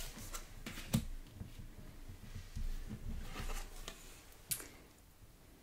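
Cards slide and tap softly on a tabletop.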